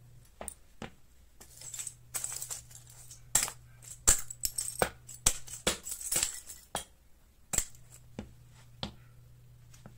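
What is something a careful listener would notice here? Sneakers stomp and crunch on a crumbly powder on a hard floor.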